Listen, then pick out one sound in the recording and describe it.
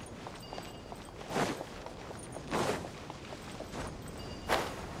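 Light footsteps patter quickly on stone.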